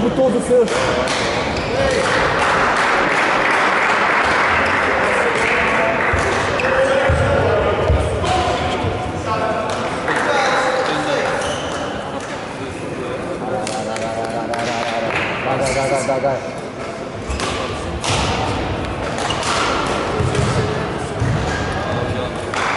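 Rackets smack a shuttlecock back and forth in a large echoing hall.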